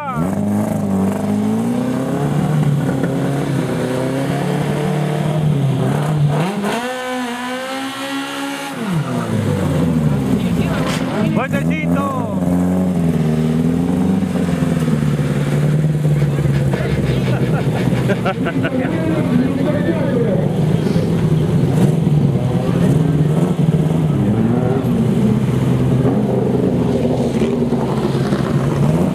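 A car engine idles loudly and revs up and down.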